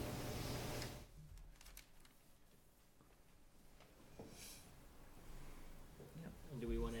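A man speaks faintly and calmly across a meeting room.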